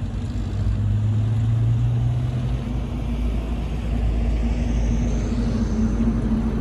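A truck engine rumbles steadily nearby.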